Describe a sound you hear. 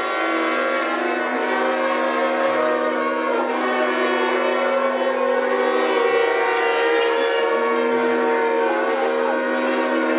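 A violin plays a lively tune.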